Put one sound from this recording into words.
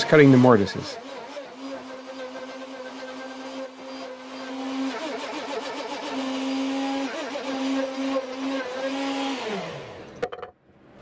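A router motor hums steadily, then winds down.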